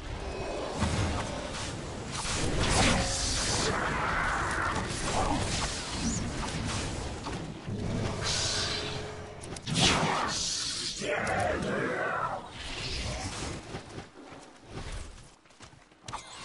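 Magic spells burst and crackle in a fantasy battle.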